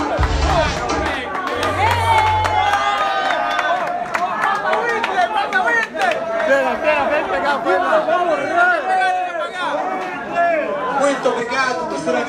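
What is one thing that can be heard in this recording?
A crowd of young men sings and chants loudly together, close by.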